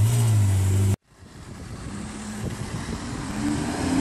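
A sports car engine rumbles and grows louder as the car pulls up.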